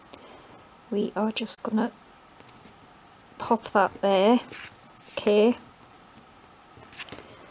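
Paper rustles softly as a hand presses and smooths it.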